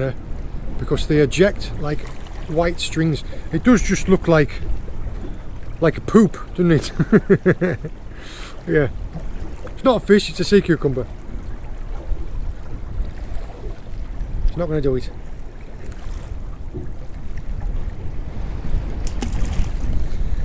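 Wind blows across the open water outdoors.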